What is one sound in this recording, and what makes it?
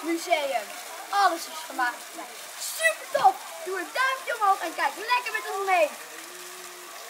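A young boy talks excitedly, close by.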